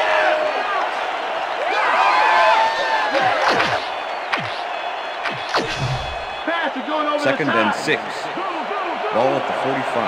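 A large stadium crowd cheers loudly, with shrill whistles rising and falling.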